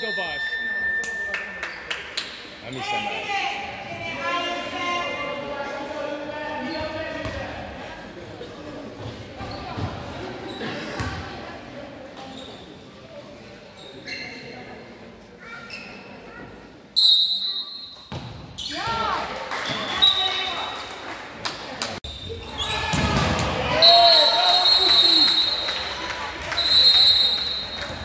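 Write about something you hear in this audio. A referee's whistle blows sharply in a large echoing hall.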